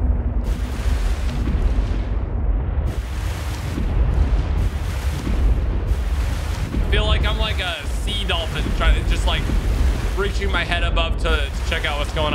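Water rumbles and splashes against a small craft riding through waves.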